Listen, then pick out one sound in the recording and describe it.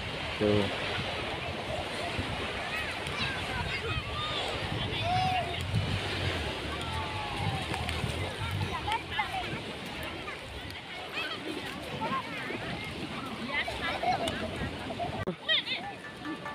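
Children chatter and call out in the distance outdoors.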